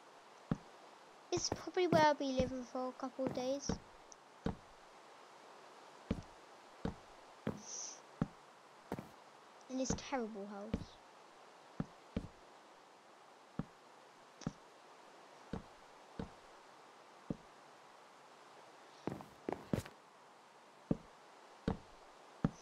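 Wooden blocks knock softly, one at a time, as they are placed.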